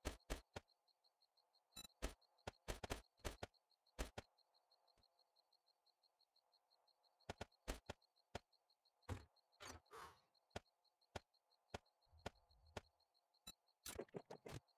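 Short clicks sound quickly as items are moved around in a game menu.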